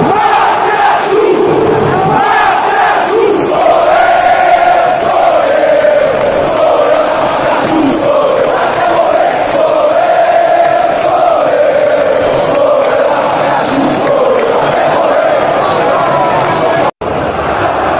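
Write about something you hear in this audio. A huge crowd of fans sings and chants loudly in a large echoing stadium.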